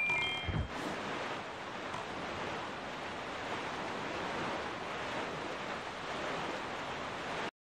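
Strong wind blows steadily.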